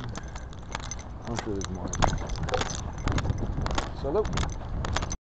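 A bicycle rattles and clatters over a bumpy road.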